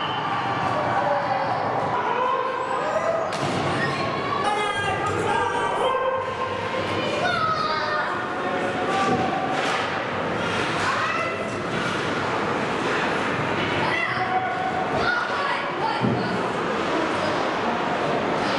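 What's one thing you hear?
A crowd of spectators chatters and calls out in an echoing arena.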